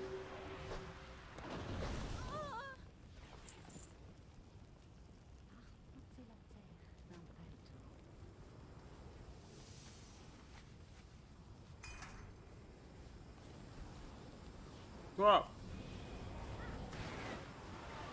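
Game magic spells whoosh and crackle.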